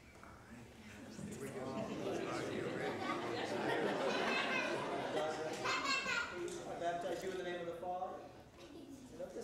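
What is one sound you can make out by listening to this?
An elderly man speaks calmly in a large echoing hall.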